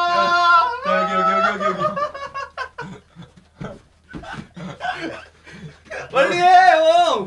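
A young man shouts playfully close by.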